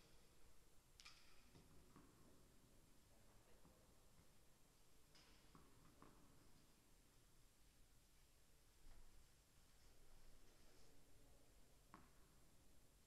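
A tennis ball thuds on a court in a large echoing hall.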